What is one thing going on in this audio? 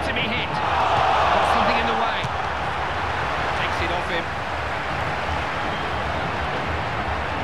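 A large stadium crowd roars steadily, swelling briefly near the start.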